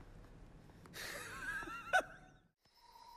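A middle-aged man groans loudly.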